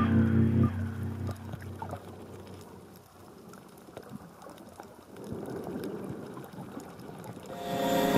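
Water swirls and gurgles, heard muffled underwater.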